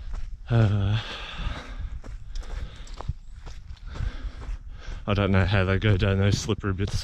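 Footsteps crunch on a dry forest trail.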